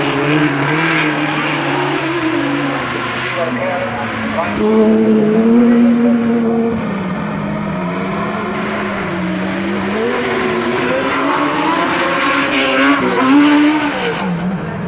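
Tyres spray loose dirt as the buggies slide through a turn.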